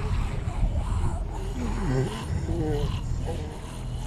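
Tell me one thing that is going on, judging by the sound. Zombies groan and growl nearby.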